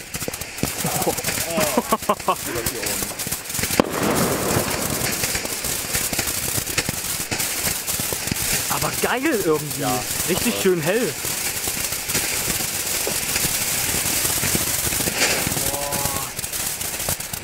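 Whistling fireworks shriek as they fly up.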